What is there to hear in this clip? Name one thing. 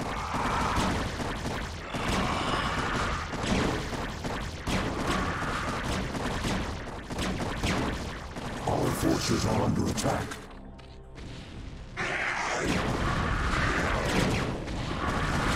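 Gunfire and explosions crackle in a battle game.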